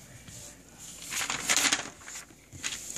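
Paper pages rustle as they are turned.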